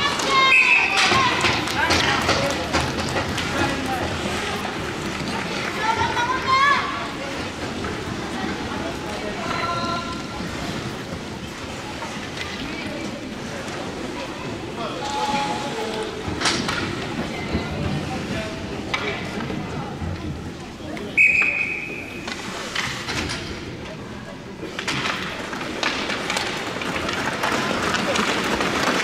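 Hockey sticks clack against the puck and ice.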